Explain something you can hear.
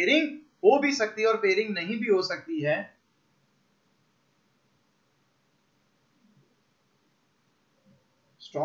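A young man speaks clearly into a close microphone, explaining.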